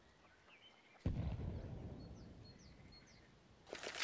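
A rifle fires once with a loud boom that echoes away.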